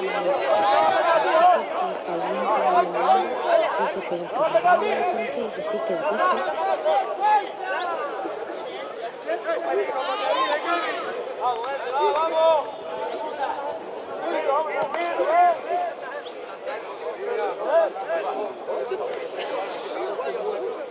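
Several men shout and call to each other across an open outdoor field.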